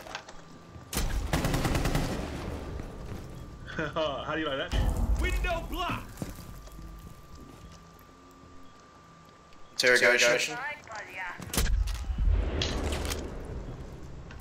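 Explosions blast with a deep boom and clattering debris.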